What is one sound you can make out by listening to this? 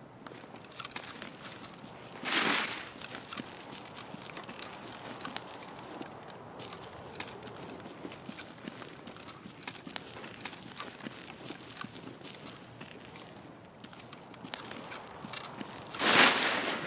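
Footsteps crunch through grass and dirt.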